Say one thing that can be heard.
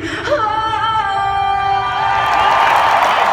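A woman sings through loudspeakers in a large echoing stadium.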